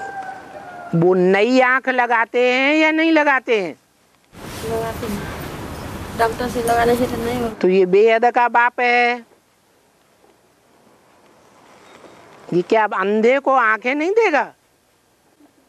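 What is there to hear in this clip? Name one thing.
An elderly man sings slowly into a microphone.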